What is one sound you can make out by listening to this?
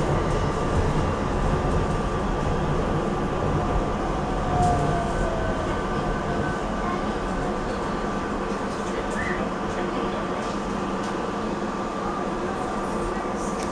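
A passing train rumbles and hums close by on the rails.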